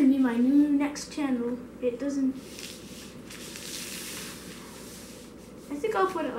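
Paper crinkles as a boy handles a sheet.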